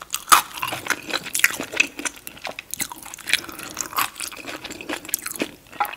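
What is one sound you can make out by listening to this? A spring roll squelches as it is dipped in sauce.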